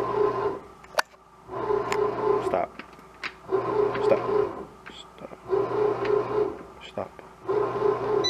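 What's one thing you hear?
A button clicks several times.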